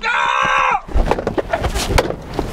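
A wooden bat thumps hard against the inside of a car.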